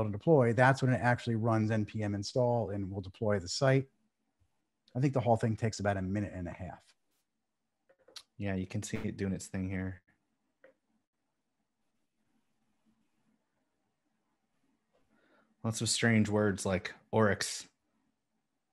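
A man speaks calmly into a close microphone, pausing now and then.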